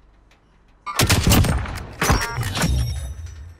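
A rifle fires a loud shot that echoes away.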